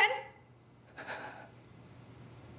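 A middle-aged woman speaks in a tearful voice.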